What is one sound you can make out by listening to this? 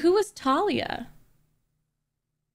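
A young woman speaks close to a microphone in a high, animated voice.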